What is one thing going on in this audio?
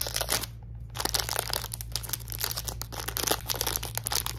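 A foil wrapper crinkles and rustles loudly close up.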